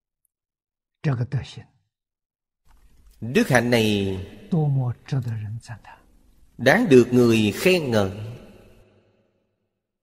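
An elderly man speaks calmly and warmly into a close microphone.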